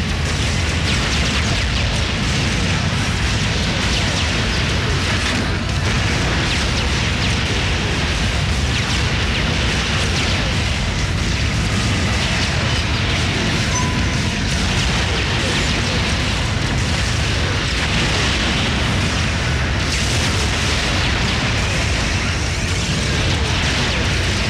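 Laser fire and explosions crackle and boom continuously in a space battle.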